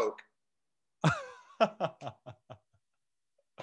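A young man laughs loudly over an online call.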